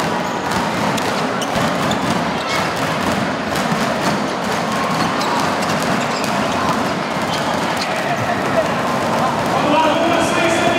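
A large crowd cheers and chatters in an echoing arena.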